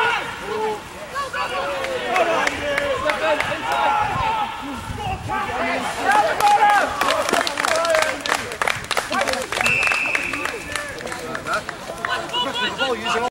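A crowd of spectators shouts and cheers excitedly outdoors.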